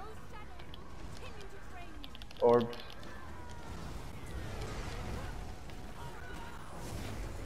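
Magic spells crackle and burst in a busy battle.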